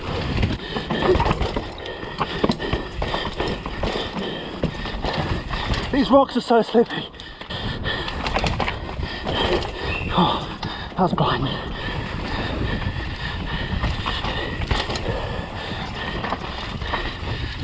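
A bicycle frame and chain rattle over bumps.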